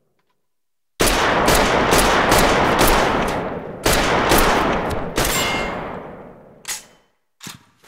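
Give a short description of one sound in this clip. A cannon fires with a loud booming blast that rumbles away.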